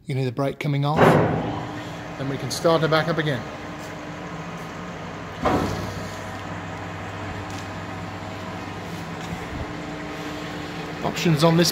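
A lathe motor hums steadily.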